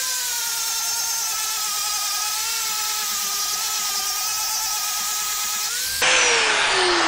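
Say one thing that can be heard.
An angle grinder whines steadily as it cuts into metal.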